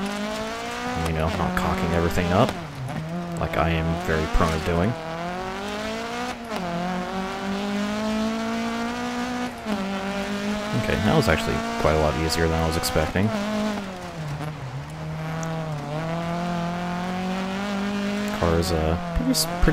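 Tyres skid and crunch over loose gravel.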